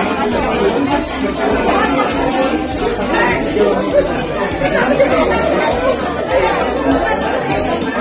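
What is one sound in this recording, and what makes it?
Several adults chat and talk over one another close by, in a lively room.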